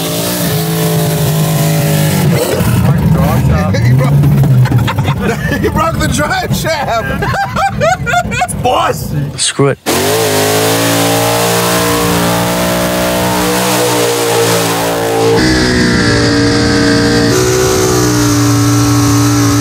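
A car engine roars at high revs.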